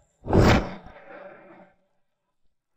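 A fire roars in a burst.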